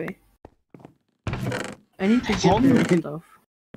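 A wooden chest creaks open.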